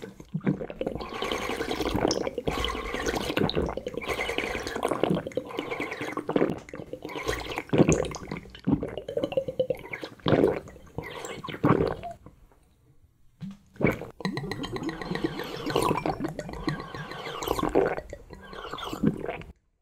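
A young man slurps and sucks jelly from a bottle up close.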